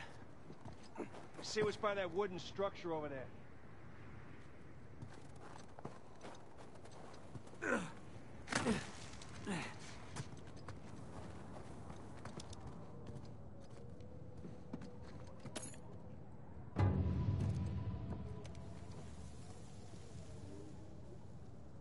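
Footsteps crunch over snowy rock.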